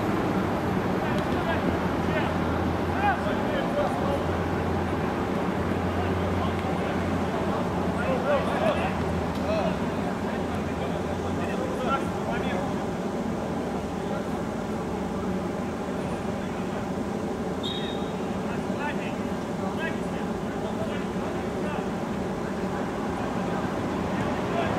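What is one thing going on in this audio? Players shout to each other across an outdoor pitch.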